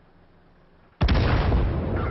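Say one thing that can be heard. A huge explosion booms up close.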